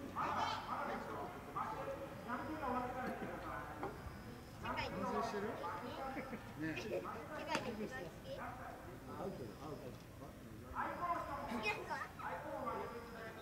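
Young men call out and chatter across an outdoor ball field.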